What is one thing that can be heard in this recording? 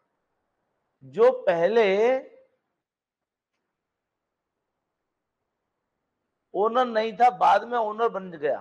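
A middle-aged man lectures through a microphone, speaking with animation.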